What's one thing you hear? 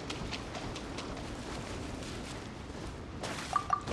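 Footsteps patter on sand.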